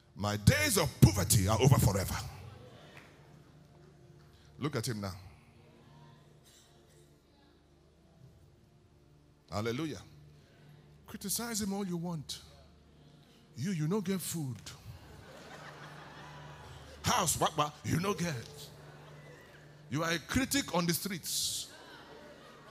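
A man speaks loudly and with animation through a microphone in a large hall, in short bursts.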